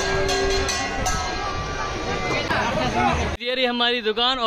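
A large crowd clamours loudly outdoors.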